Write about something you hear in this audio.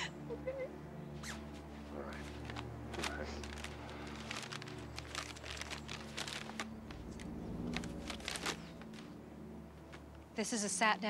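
Paper rustles and crinkles as a map is unfolded.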